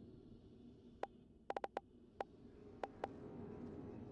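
Soft clicks tick as a selection wheel turns.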